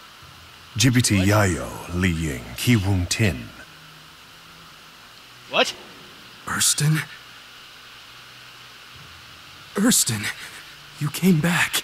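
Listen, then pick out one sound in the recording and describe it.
A young man speaks calmly and gravely, in short phrases.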